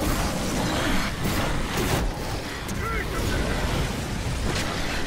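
Heavy blows thud and slash as fighters clash.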